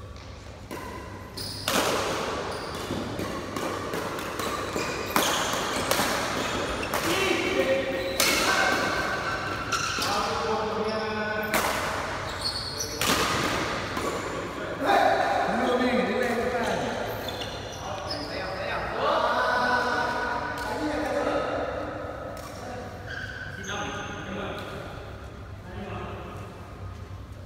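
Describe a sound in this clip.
Shoes squeak on a hard floor.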